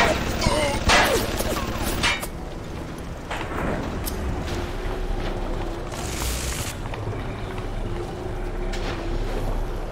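Electricity crackles and fizzes softly.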